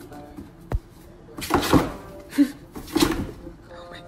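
A cardboard box thumps and rustles as a cat leaps at it.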